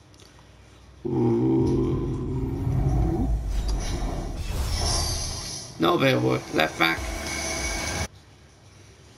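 A deep, swelling rumble builds and then bursts into a bright shimmering whoosh.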